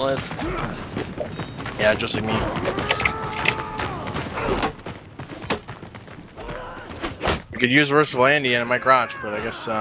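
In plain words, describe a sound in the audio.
Metal weapons clash and clang in a battle.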